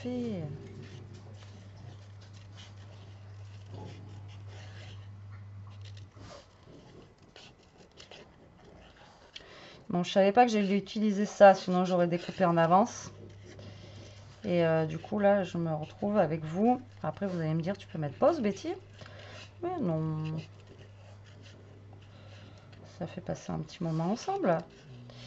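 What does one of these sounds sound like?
Paper rustles and crinkles as it is handled.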